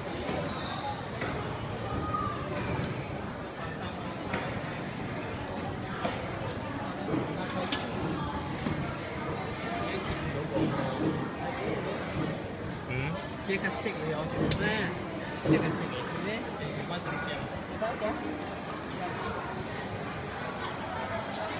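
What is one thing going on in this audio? Fruits knock and rustle as a hand picks through a plastic basket.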